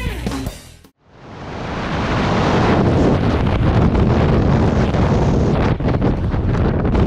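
Wind roars loudly and steadily past the microphone in free fall.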